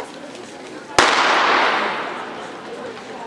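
A starting pistol fires once with a sharp crack that echoes through a large hall.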